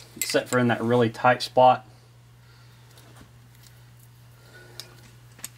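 A rope rustles softly as it is wound and tied.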